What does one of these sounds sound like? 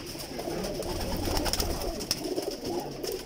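A pigeon's wings flap loudly.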